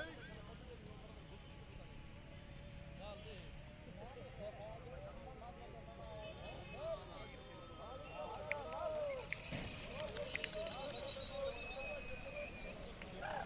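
Pigeons coo softly in a flock.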